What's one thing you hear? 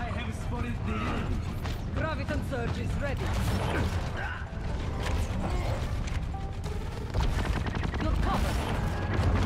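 Rapid energy gunfire crackles and zaps.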